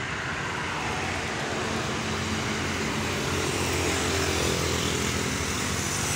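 A motor scooter buzzes past.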